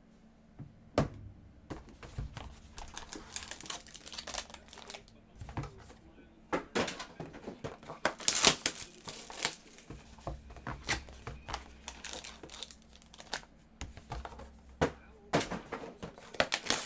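Cardboard boxes and card packs rustle and tap as they are handled.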